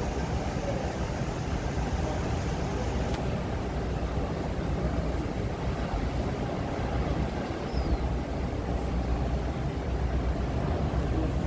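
A large ship's engine rumbles low and steady.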